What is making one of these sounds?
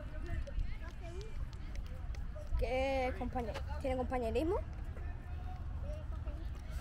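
A young boy speaks close to the microphone, pausing to think.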